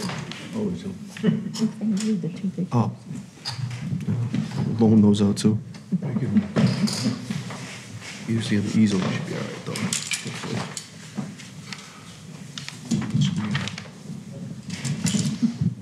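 An older man talks steadily into a microphone in an echoing room.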